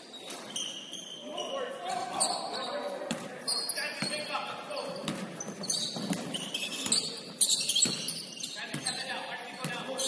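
Young men shout and call out to each other across an echoing gym.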